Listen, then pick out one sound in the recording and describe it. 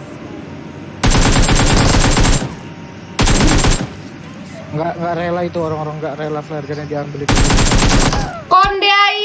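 Rapid gunfire bursts out in loud bursts.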